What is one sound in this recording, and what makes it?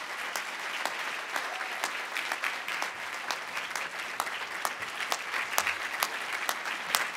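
An audience applauds steadily in a large room.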